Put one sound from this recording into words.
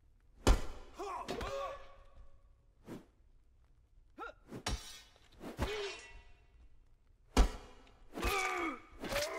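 Weapons clash and strike in short, sharp blows.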